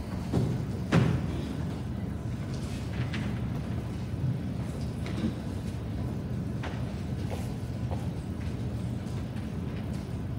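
Footsteps and shuffling echo softly in a large hall.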